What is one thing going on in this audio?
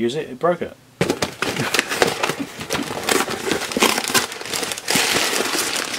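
Cardboard flaps scrape and rustle as a box is opened.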